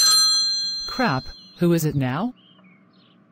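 A woman asks a question in an annoyed tone.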